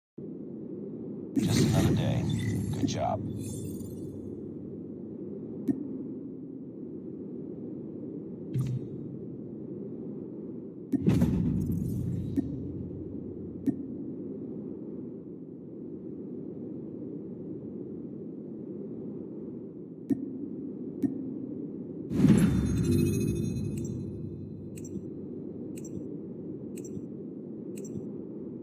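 Steady game menu music plays throughout.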